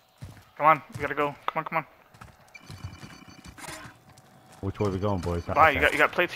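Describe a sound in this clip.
Footsteps crunch quickly over gravel.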